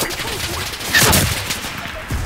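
A gunshot cracks loudly nearby.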